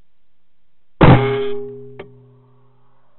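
A rifle fires a single loud shot that rings out briefly.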